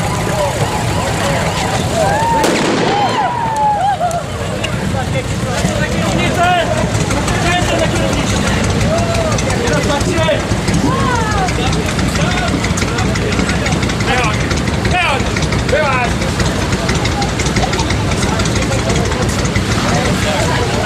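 Motorcycle engines idle with a steady low rumble close by.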